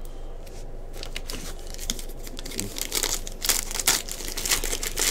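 A foil wrapper crinkles and tears open up close.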